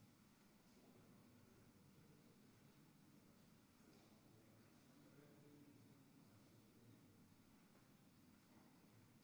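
Footsteps shuffle softly on a stone floor in a large echoing hall.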